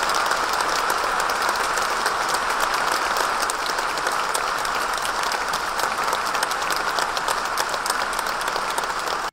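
Dancers' shoes tap and thud lightly on a wooden stage.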